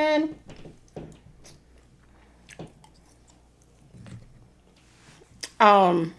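A woman chews food close to a microphone.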